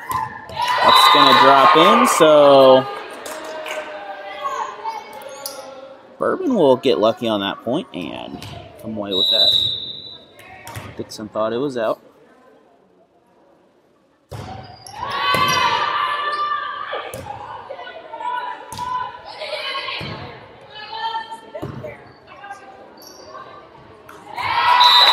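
Spectators cheer and shout.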